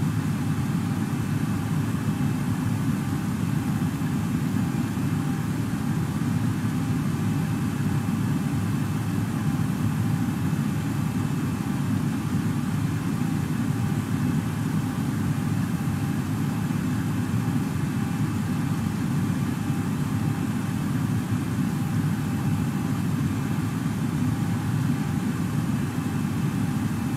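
A steady low engine drone fills an aircraft cockpit.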